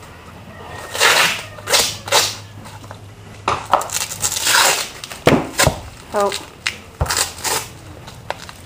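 A hand rubs and scrapes against a horse's hoof.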